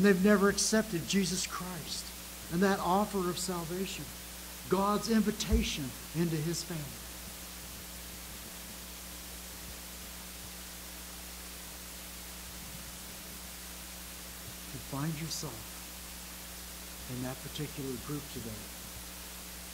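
An elderly man speaks with feeling into a microphone, in bursts with long pauses.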